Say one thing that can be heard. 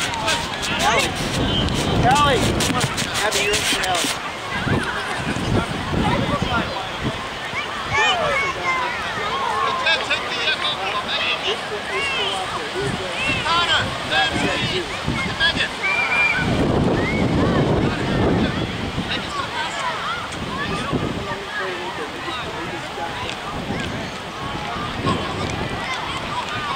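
Young children shout and call out across an open field.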